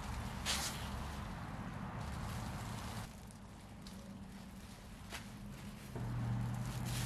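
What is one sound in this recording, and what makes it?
A plastic sheet rustles and crinkles as it is spread out.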